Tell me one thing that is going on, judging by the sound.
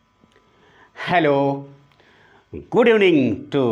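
A man speaks loudly and clearly into a close microphone.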